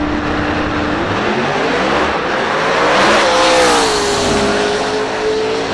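Race car engines roar to full power and scream down the strip, rising and then fading.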